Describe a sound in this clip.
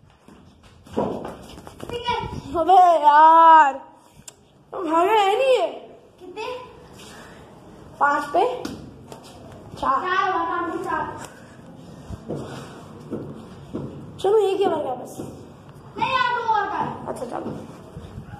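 A boy talks with animation close by.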